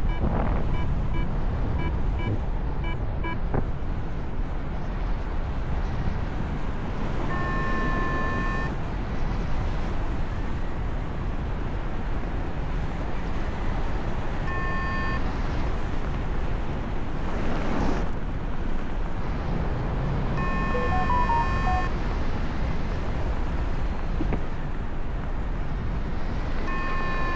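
Wind rushes and buffets loudly, as if heard in steady flight high in the open air.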